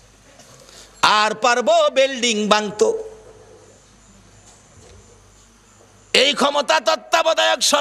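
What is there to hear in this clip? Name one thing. A middle-aged man preaches loudly and passionately through a microphone, in bursts with pauses.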